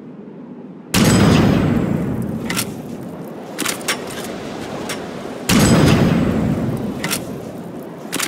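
A rifle fires single shots with a rolling echo.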